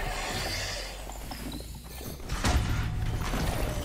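A bowstring twangs as an arrow is shot.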